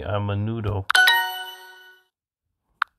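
A short, bright chime rings out.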